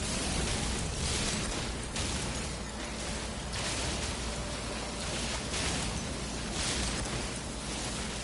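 A video game mining laser fires with a buzzing hiss.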